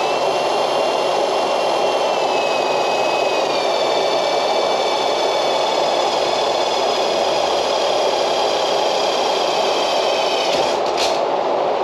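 A cordless drill whirs, driving a screw into metal.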